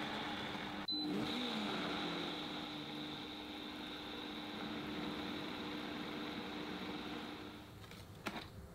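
A blender whirs steadily.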